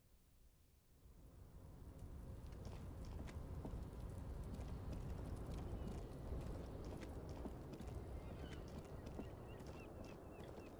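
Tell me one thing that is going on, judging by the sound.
Wind blows steadily with a low rumble.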